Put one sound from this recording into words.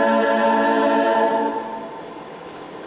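A choir of women sings a held chord that fades away.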